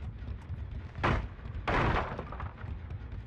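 A wooden pallet slams down with a loud crash.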